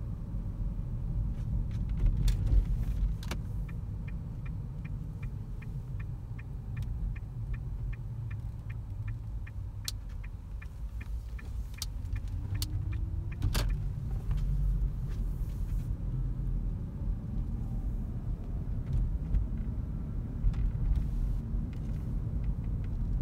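A car's engine and tyres rumble steadily from inside the cabin.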